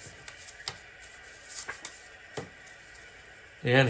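Playing cards rustle and tap as they are handled.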